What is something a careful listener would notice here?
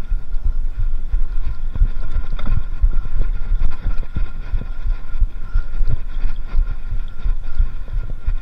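A mountain bike rattles and bumps over a rough dirt trail.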